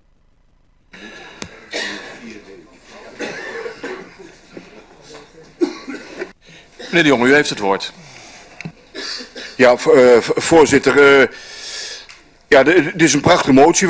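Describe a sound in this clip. An older man speaks steadily into a microphone.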